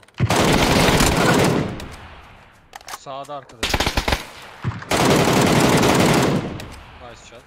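Loud gunfire booms in rapid bursts.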